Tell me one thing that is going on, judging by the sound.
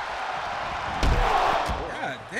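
A heavy body slams onto a wrestling mat.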